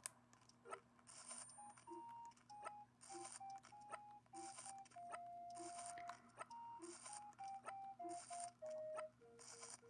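A handheld game console plays a light, tinkling tune through its small speaker.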